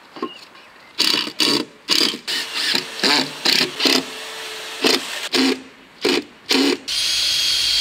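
A hand tool scrapes quickly against wood.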